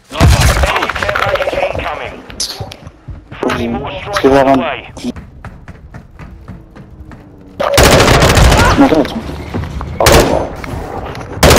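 Rapid gunfire bursts out loudly in short volleys.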